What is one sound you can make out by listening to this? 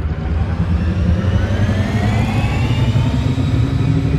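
A high engine whine rises slowly in pitch.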